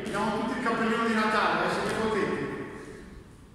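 A man calls out loudly in an echoing room.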